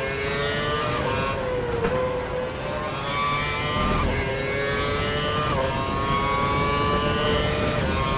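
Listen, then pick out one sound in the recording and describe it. A racing car engine whines at high revs, rising in pitch and dropping sharply with each gear change.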